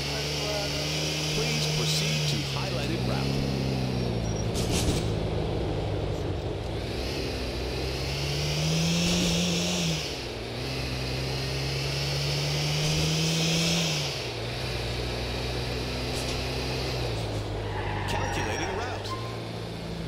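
A car engine hums and revs as it drives along.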